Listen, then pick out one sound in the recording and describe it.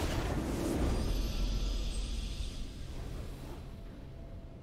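A triumphant victory fanfare swells and then fades away.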